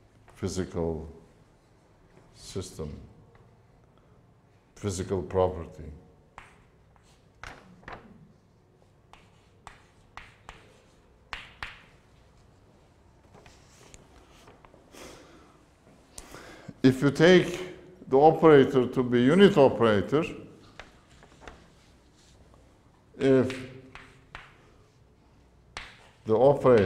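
An elderly man lectures.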